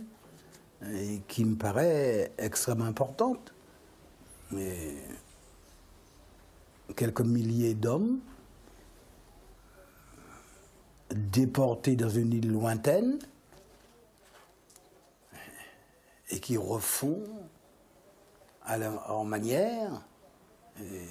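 An elderly man speaks calmly and thoughtfully, close to a microphone, with pauses.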